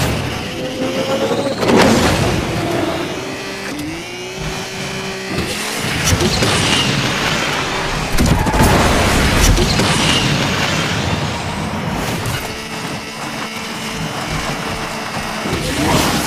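A racing sports car engine roars at high speed, shifting through gears.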